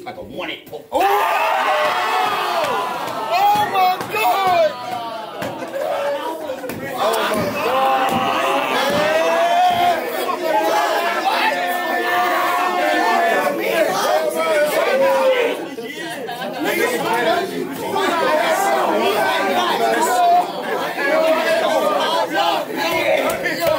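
A young man raps loudly and aggressively at close range.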